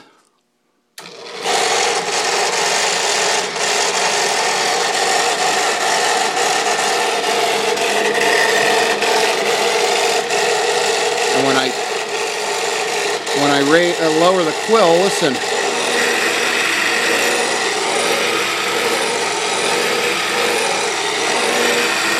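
A drill press motor runs with a steady whirring hum.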